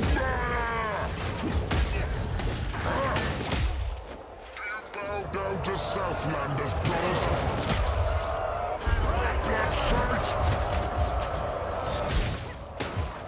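Blades slash and strike with heavy, wet thuds.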